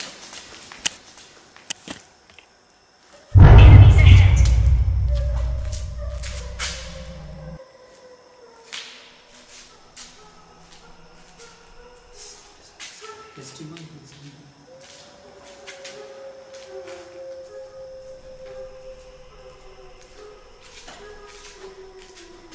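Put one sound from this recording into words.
Footsteps scuff and tap on a hard floor in a large, echoing room.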